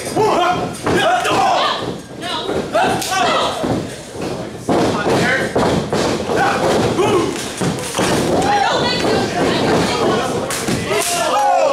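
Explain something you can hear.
Bodies slam against the ring ropes and mat with loud thuds.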